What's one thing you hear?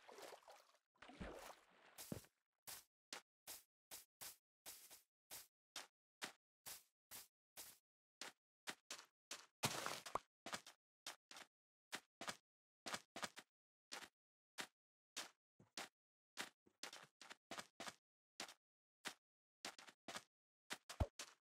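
Footsteps crunch on sand and grass at a steady walking pace.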